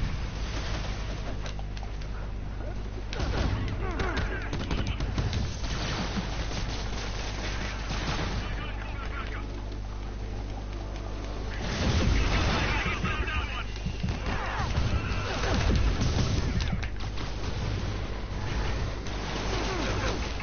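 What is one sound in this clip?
Gunfire and laser blasts crack during a fight.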